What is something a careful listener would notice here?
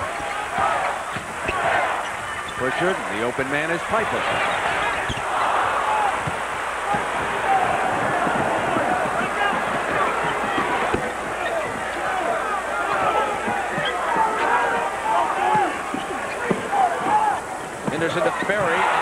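A large crowd cheers and murmurs in a big echoing arena.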